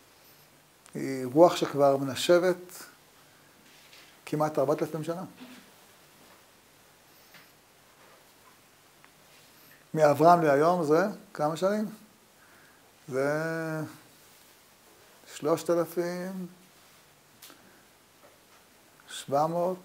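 An elderly man speaks calmly into a microphone in short phrases with pauses.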